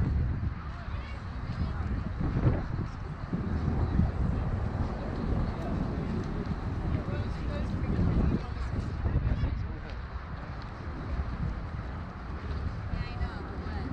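A crowd of people chatter in the distance.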